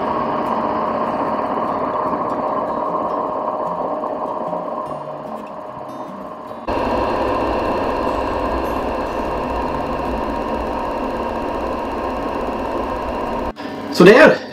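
A food dehydrator's fan hums steadily.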